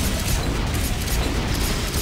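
Handguns fire in rapid bursts.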